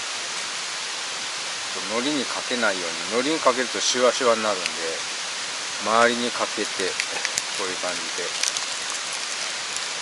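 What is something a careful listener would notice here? Plastic wrapping crinkles as it is peeled from food.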